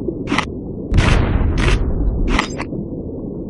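A loud explosion booms in a game.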